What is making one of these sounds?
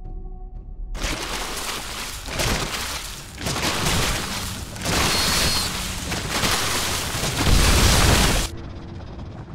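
Weapons fire and explosions crackle loudly in a battle.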